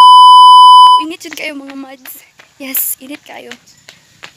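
A young woman talks close to the microphone, with animation.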